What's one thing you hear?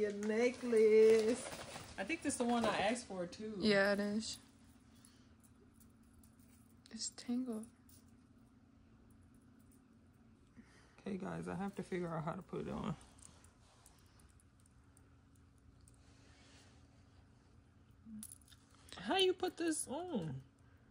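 A metal chain jingles softly in a young woman's hands.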